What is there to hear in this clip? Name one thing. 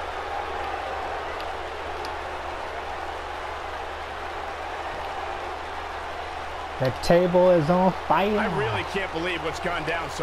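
A large crowd murmurs and cheers in a big arena.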